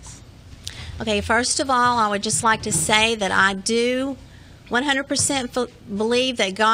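A woman speaks emotionally into a microphone, close by.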